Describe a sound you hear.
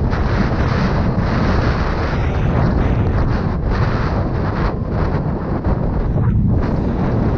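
Wind rushes loudly past the listener, as if riding fast outdoors.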